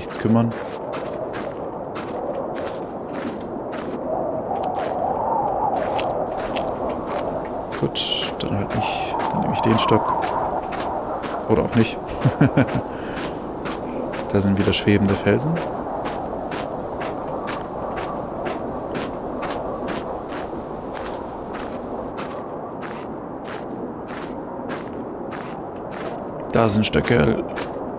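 A strong wind howls steadily.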